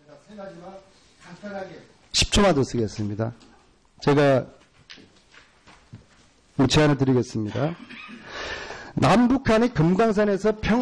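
A middle-aged man speaks into a microphone in a formal, animated tone.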